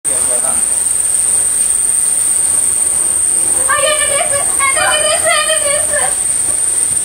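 A firework fountain hisses and crackles loudly.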